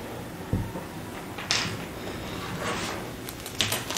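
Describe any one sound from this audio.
A tape measure rustles as it is pulled away.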